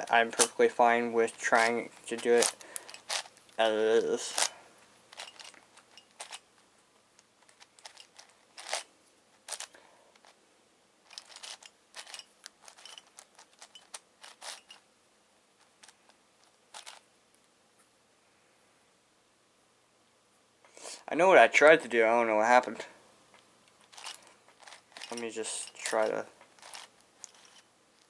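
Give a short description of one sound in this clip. A puzzle cube clicks and clacks as it is twisted by hand.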